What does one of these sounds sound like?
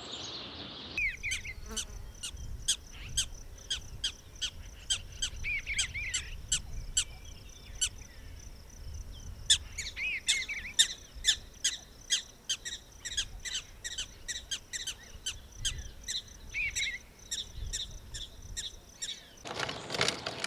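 A songbird chirps and warbles repeatedly nearby.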